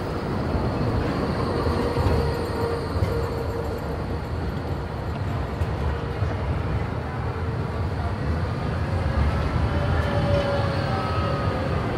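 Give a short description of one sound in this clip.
Tram wheels squeal faintly on the rails.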